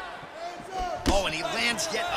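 A kick lands with a heavy thud.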